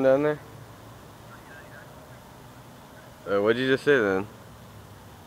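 A young person speaks close by into a phone.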